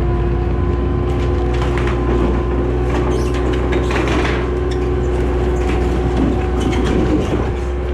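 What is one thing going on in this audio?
Sheet metal roofing creaks and bangs as a shed is pushed over.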